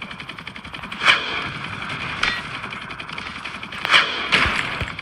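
Gunfire and explosions burst now and then.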